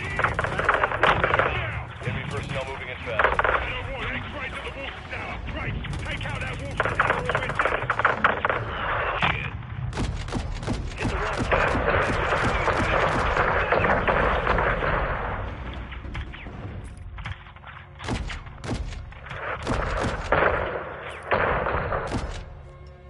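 Explosions boom heavily with deep rumbles.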